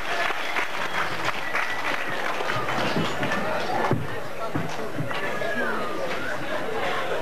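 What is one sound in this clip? A rock band plays loudly in an echoing hall.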